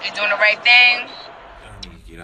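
A woman speaks loudly and animatedly into a phone microphone.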